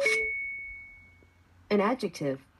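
A small speaker gives a short electronic chime.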